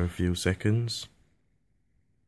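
A computer plays its startup chime.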